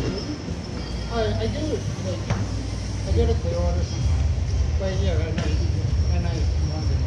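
Men talk quietly across a large room.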